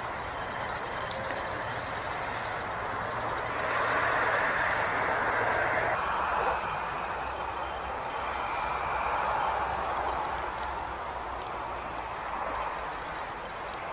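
A jet airliner rumbles faintly far overhead.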